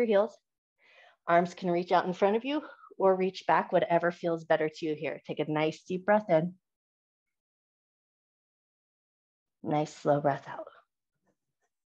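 A woman speaks calmly through a microphone on an online call.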